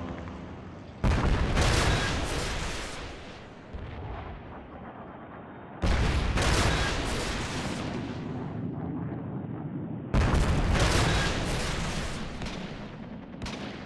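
Heavy explosions boom and rumble, each one fading slowly.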